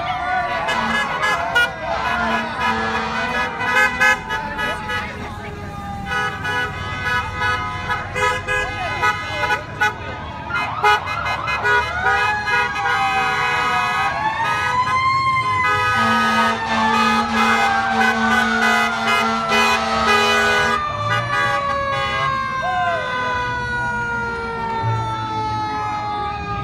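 Cars drive slowly past on a street.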